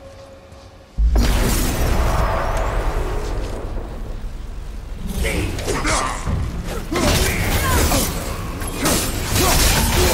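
A deep rumbling roar swells as a dark rift opens.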